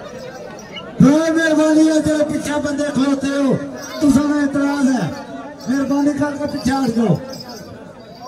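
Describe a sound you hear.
A man nearby calls out loudly in long, drawn-out cries.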